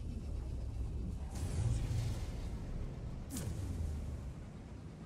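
A spaceship roars through a warp tunnel with rushing whooshes.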